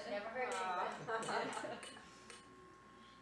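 People laugh and talk together close by.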